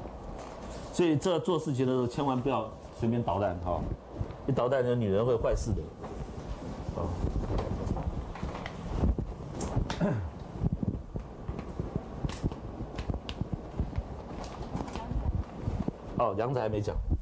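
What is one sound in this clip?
A middle-aged man lectures calmly.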